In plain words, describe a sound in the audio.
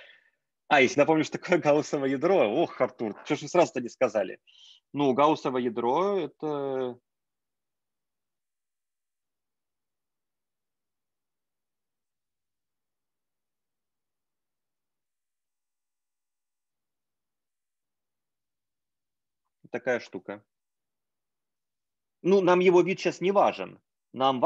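A man speaks calmly over an online call, pausing now and then.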